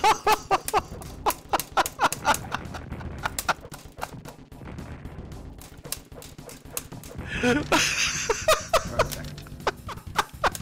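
Punches and kicks land with sharp thuds in a video game fight.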